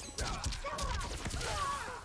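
Flames burst with a roaring whoosh.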